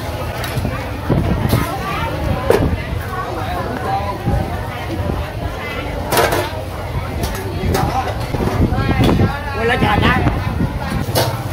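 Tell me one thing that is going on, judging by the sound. Batter sizzles in a hot wok.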